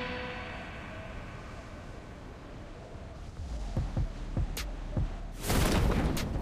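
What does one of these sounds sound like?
Wind rushes loudly past a skydiver in free fall.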